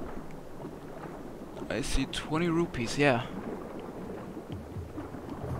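Water swishes as a swimmer moves underwater.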